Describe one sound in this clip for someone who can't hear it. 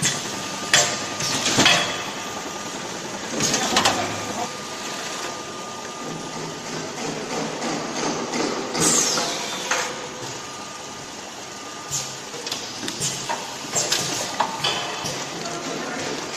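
A packing machine hums and rattles steadily.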